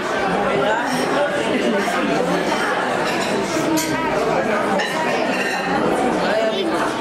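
A middle-aged woman speaks warmly into a microphone, heard through a loudspeaker.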